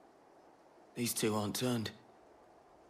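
A man speaks warily through a helmet.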